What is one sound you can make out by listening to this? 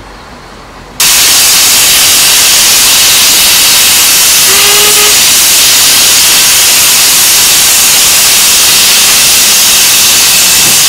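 Steam hisses loudly from a locomotive.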